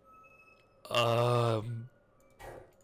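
A bright electronic chime rings out as a puzzle line completes.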